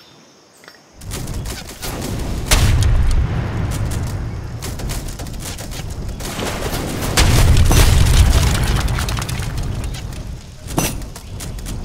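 Muskets crackle in rapid, dense volleys during a battle.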